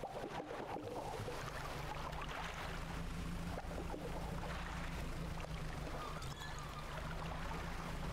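Water washes and splashes around a moving boat.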